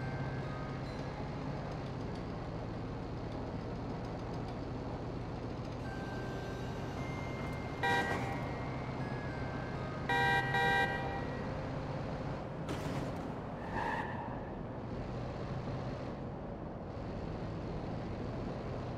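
A truck engine rumbles steadily as it drives through streets.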